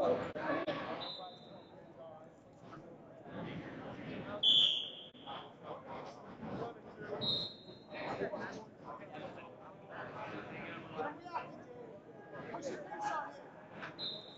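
A referee's whistle blows in short bursts.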